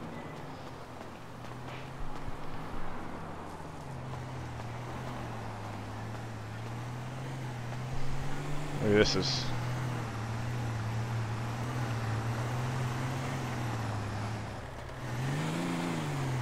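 Footsteps walk steadily on pavement.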